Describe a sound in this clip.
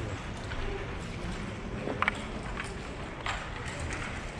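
Backgammon checkers click as they are set down on a board.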